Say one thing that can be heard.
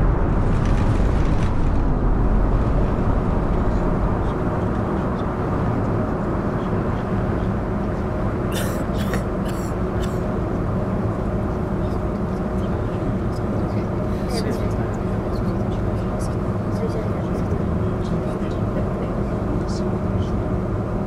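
A bus engine hums steadily at idle and while pulling away.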